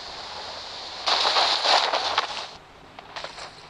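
Wind rushes past during a parachute descent.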